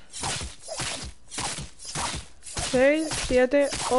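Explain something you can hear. A pickaxe strikes hay bales with repeated thuds.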